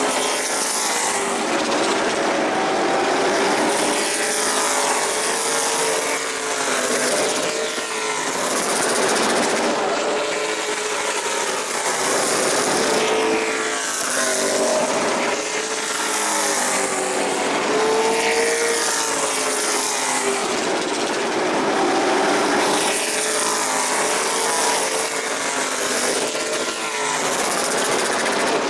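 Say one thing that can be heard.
Race car engines roar loudly as cars speed past, rising and falling in pitch.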